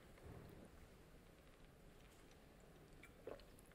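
A woman sips from a water bottle.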